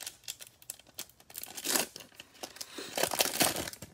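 A foil wrapper tears open.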